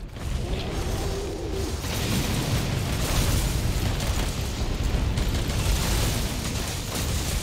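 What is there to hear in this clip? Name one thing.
A powerful beam blasts with a loud, steady roar.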